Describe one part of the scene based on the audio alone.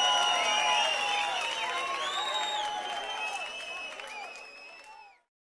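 An electric guitar plays loudly and fades out.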